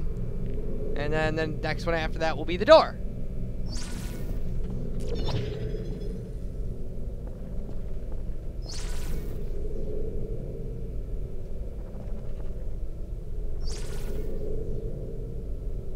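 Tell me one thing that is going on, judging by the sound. A portal hums steadily.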